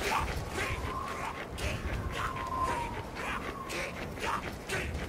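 A jetpack roars.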